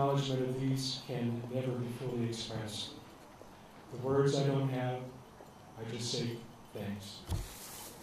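A middle-aged man speaks steadily through a microphone and loudspeaker outdoors.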